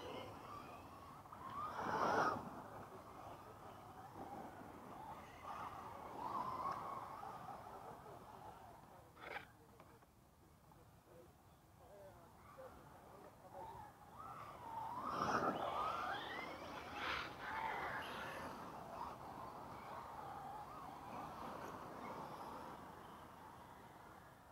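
Tyres scrape and skid on loose dirt.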